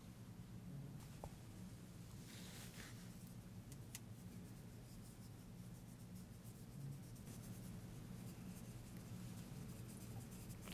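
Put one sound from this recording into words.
Thin metal flakes rustle and crinkle softly, close up.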